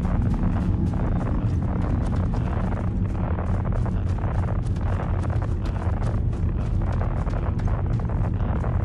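Heavy boots crunch quickly on gravelly ground.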